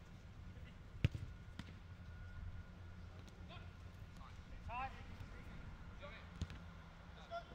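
A football is kicked with sharp thuds.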